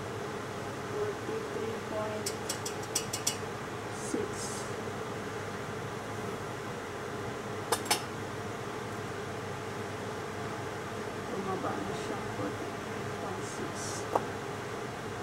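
A metal spoon clinks against a metal bowl.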